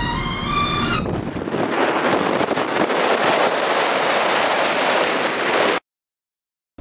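Wind rushes past a moving vehicle.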